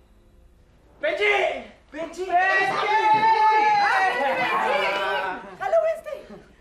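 Several people shout and talk excitedly at once.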